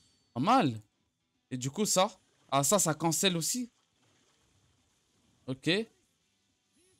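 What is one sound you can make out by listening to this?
A young man talks with animation into a microphone in short bursts.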